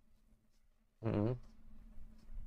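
A young man makes a short, loud vocal sound close to a microphone.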